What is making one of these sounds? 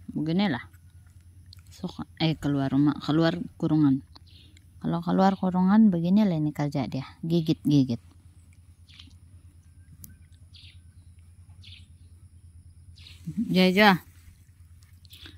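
A puppy gnaws on a rubber sandal.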